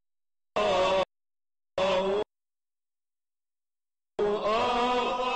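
A man chants in a sustained, singing voice through a microphone.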